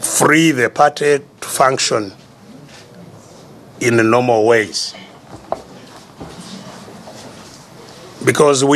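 An elderly man speaks forcefully through a microphone, with pauses between phrases.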